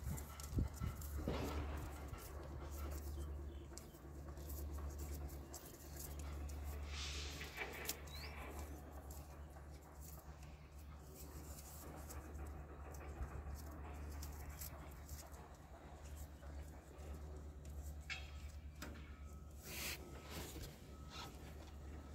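Plastic wire connectors click and rustle as hands work on them.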